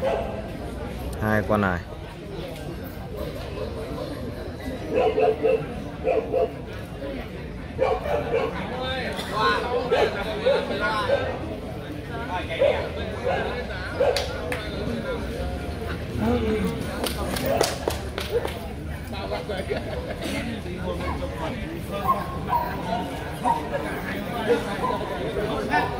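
A crowd of men chatters nearby.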